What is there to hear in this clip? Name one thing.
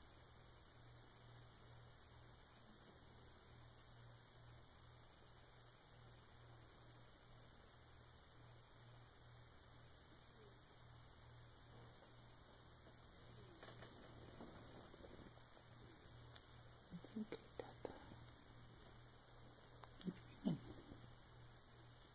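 A cat purrs steadily close by.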